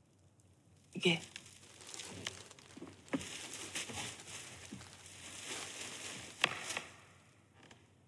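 Plastic sheeting rustles and crinkles.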